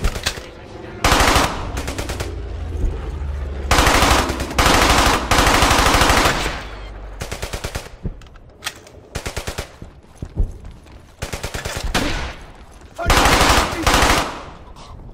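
A submachine gun fires rapid bursts that echo between brick walls.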